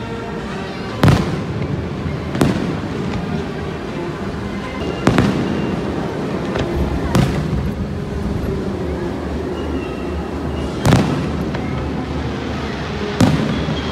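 Fireworks boom and bang loudly, one after another.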